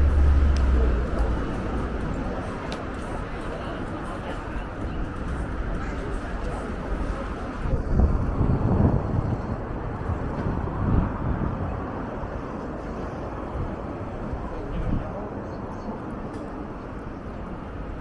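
Busy city street noise hums steadily outdoors.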